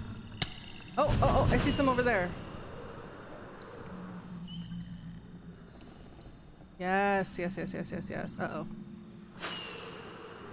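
Fireworks launch with a sharp whoosh.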